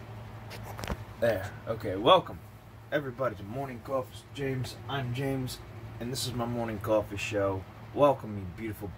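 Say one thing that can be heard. A man talks calmly close to a microphone.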